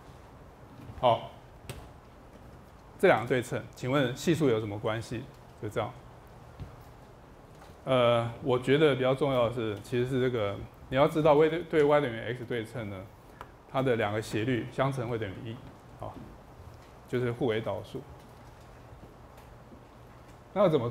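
A man lectures through a microphone in a calm, explaining voice.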